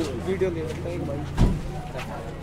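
A crowd of women chatter at once close by.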